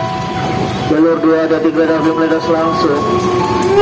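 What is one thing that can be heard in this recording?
A locomotive horn blares loudly.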